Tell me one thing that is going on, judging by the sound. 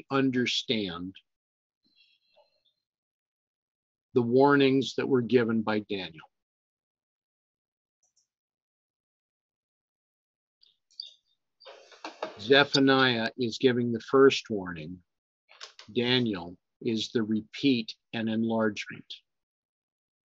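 An elderly man speaks calmly and slowly close to a microphone, with long pauses.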